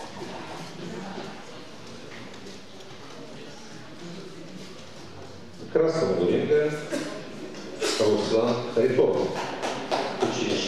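A crowd of spectators murmurs in an echoing hall.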